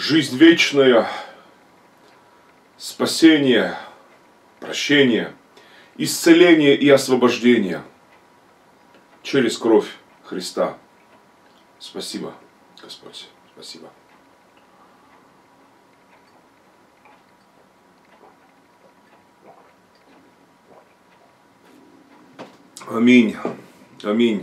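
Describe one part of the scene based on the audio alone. A middle-aged man speaks solemnly and loudly.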